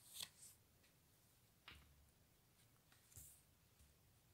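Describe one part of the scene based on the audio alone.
A playing card is laid down on a tabletop with a soft tap.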